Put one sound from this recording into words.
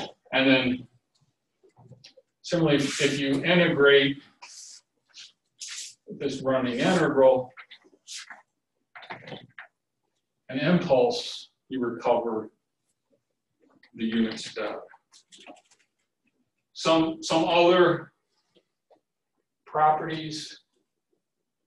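A middle-aged man lectures calmly, speaking in short bursts with pauses.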